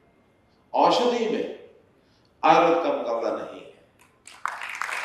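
An elderly man speaks firmly into a microphone, his voice echoing through loudspeakers.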